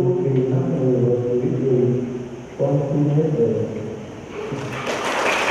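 A man reads out through a microphone and loudspeakers in an echoing hall.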